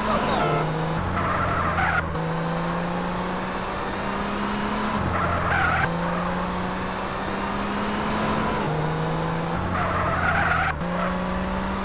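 Tyres squeal as a car slides through bends.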